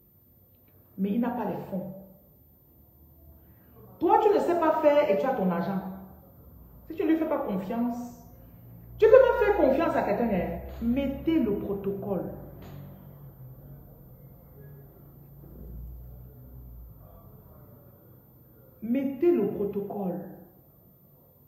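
A woman speaks close up, firmly and with emphasis.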